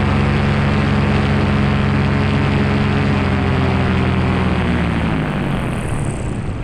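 A paraglider motor drones loudly, then winds down.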